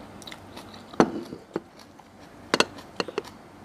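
Cutlery clinks against a bowl.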